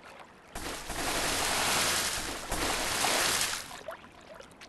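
Water splashes and rushes.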